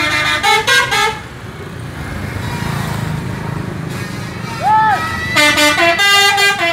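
A bus horn plays a loud, shifting musical melody in short bursts.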